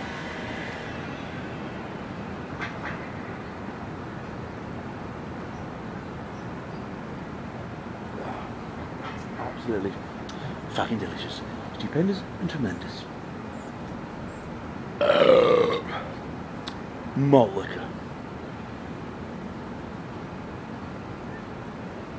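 A man gulps liquid from a bottle.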